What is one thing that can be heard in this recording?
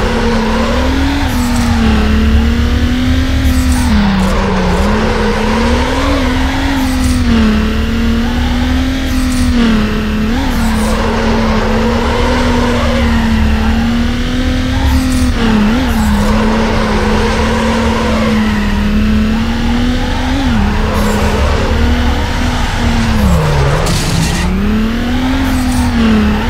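Tyres screech as a car slides through turns.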